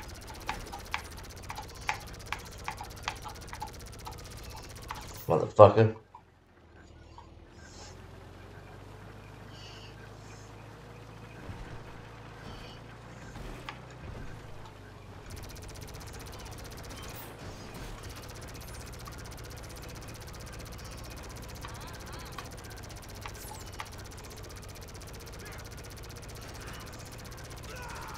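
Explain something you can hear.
A small remote-control tank drives.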